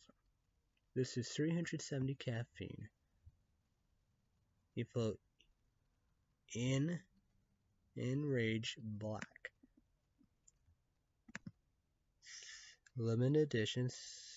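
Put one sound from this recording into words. A young man talks calmly into a nearby microphone, in short bursts with pauses.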